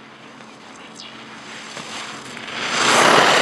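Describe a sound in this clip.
Skis scrape and hiss across hard snow, growing louder as they come close.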